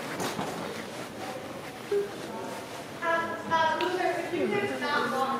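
A young woman speaks expressively in a large echoing room.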